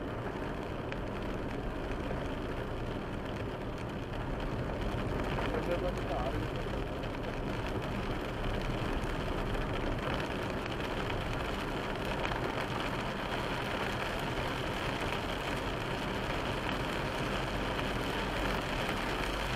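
Windscreen wipers swish back and forth.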